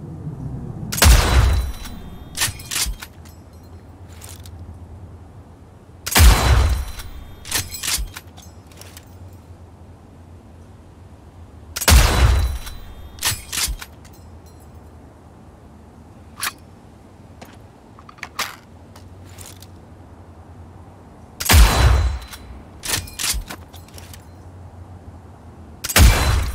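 A heavy sniper rifle fires loud booming shots.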